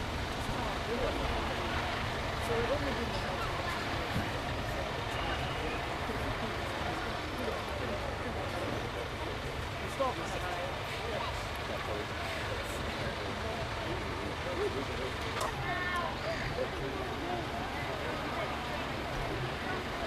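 A heavy truck engine rumbles steadily as the truck drives slowly.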